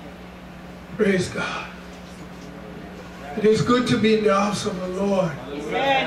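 A man speaks loudly and with fervour through a microphone and loudspeakers.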